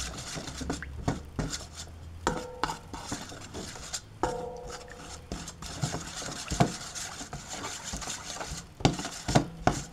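A metal spoon scrapes and clinks against a metal bowl while stirring.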